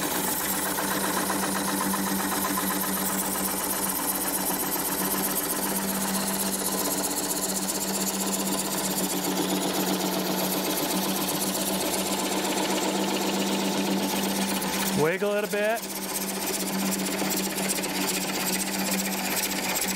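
A gouge cuts and scrapes against spinning wood.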